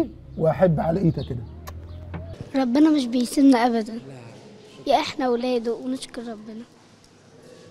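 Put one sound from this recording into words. A young girl speaks calmly into a microphone up close.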